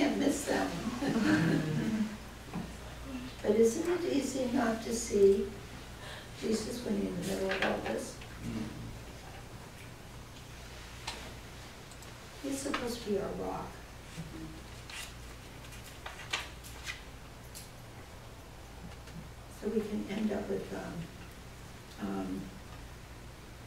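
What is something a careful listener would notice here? An older woman speaks calmly and with pauses, close by.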